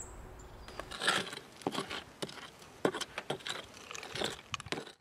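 A metal tool scrapes and chips at dry, crumbly earth.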